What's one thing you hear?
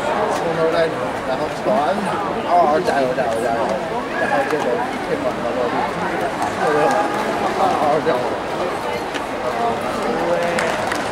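A large crowd of spectators chatters and murmurs in a big echoing hall.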